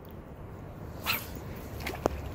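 A fishing rod swishes through the air in a quick cast.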